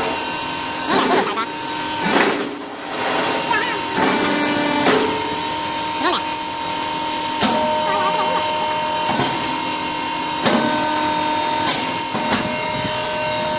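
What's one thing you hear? Briquettes clatter and knock on a shaking mesh conveyor.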